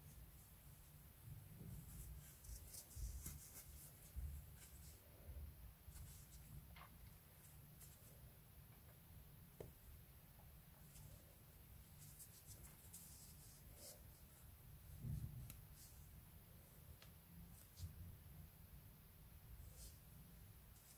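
Fabric yarn rustles softly as hands crochet with a hook.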